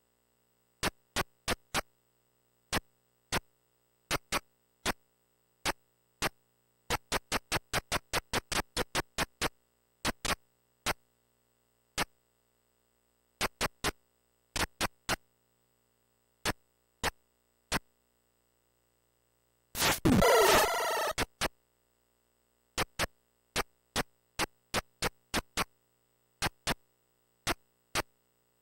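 Short electronic blips sound with each step through the game.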